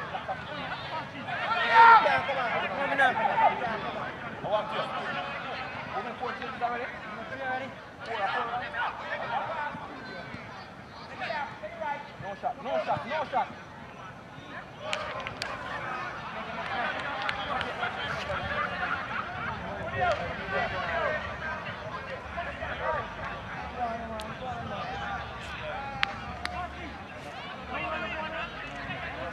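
Young players shout and call to each other across an open outdoor field.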